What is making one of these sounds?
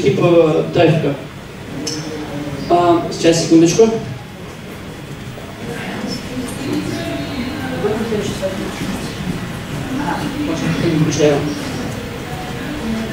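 A man speaks into a microphone, heard through loudspeakers in a large room.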